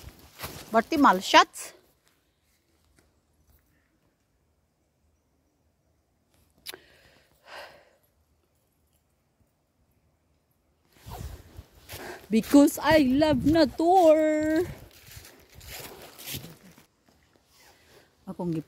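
Footsteps rustle through dry fallen leaves.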